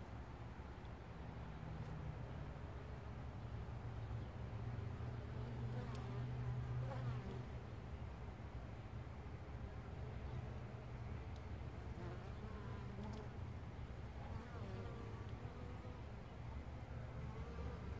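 Bees buzz in a steady low drone close by.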